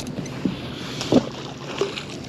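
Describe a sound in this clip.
A heavy object splashes into water nearby.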